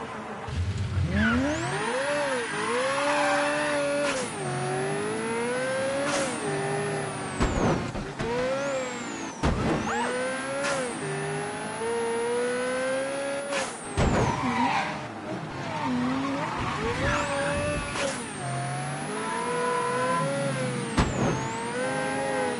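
A sports car engine roars and revs up and down through the gears.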